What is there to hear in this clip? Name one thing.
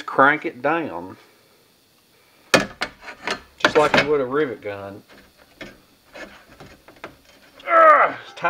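A hand rivet tool clicks and snaps as rivets are set.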